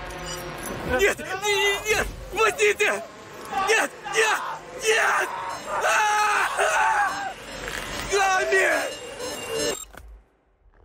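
A man growls and shouts in anger.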